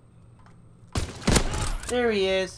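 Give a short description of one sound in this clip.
A bolt-action sniper rifle fires a single loud shot.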